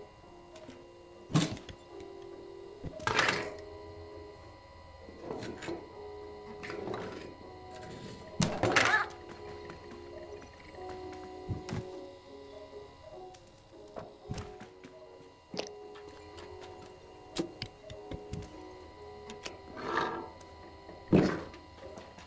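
A cat lands with soft thuds as it jumps between shelves.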